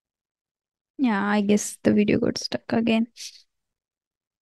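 A young woman speaks clearly into a close microphone.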